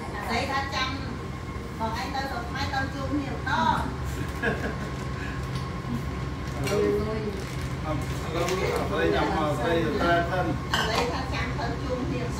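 Several men and women talk and chat casually nearby.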